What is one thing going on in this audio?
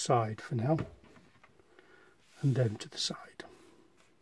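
Small plastic pieces tap softly on a wooden table.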